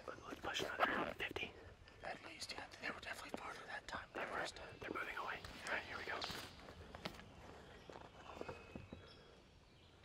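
A man speaks in a low, hushed voice close by.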